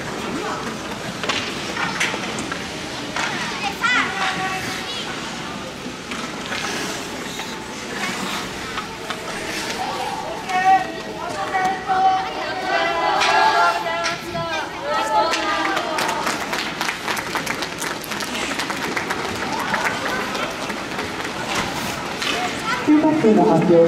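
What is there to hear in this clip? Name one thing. Young players shout and cheer in a large echoing rink.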